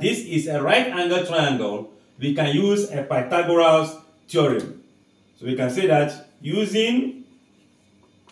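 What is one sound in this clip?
A man speaks clearly and calmly, close up.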